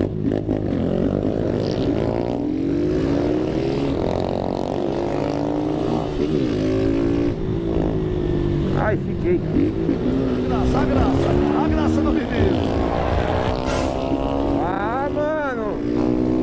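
A motorcycle engine hums and revs steadily up close.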